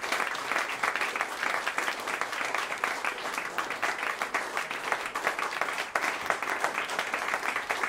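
A man plays a violin.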